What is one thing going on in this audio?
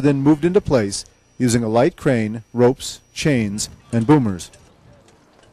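A man talks loudly close by.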